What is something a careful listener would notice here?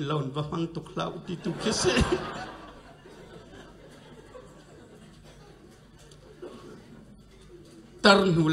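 A middle-aged man speaks with animation through a microphone and loudspeakers in an echoing room.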